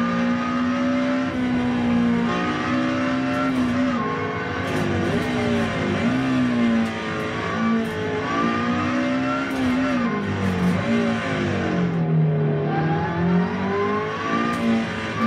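A racing car engine roars loudly, revving up and down through the gears.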